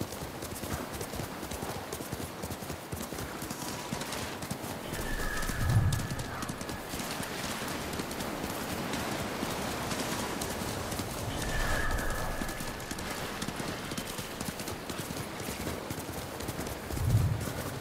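Wind blows across open ground.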